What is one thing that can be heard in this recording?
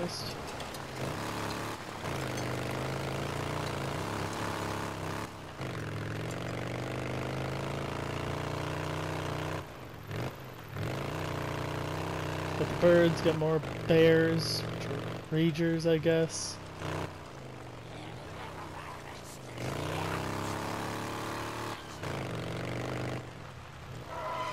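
A motorcycle engine hums steadily and revs as it rides.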